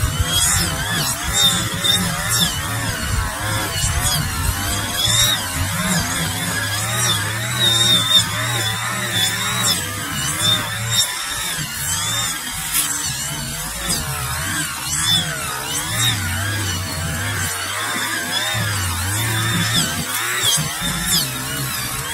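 A string trimmer buzzes in the distance while cutting grass.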